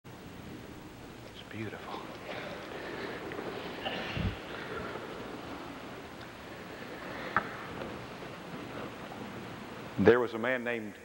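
A large choir sings in an echoing hall.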